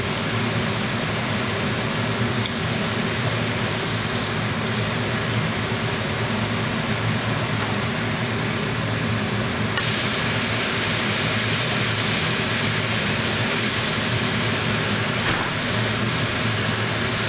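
Minced meat sizzles steadily in a hot pan.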